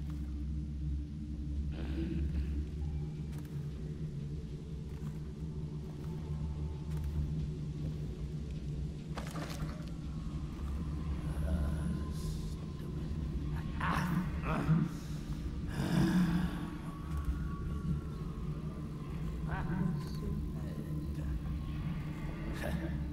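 Footsteps tread softly across a wooden floor.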